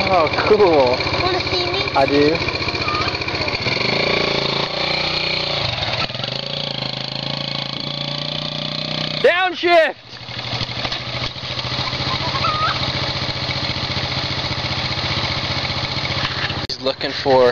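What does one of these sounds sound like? A small quad bike engine hums steadily as it drives across grass.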